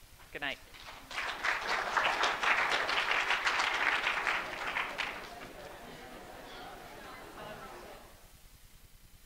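An audience applauds loudly and then fades.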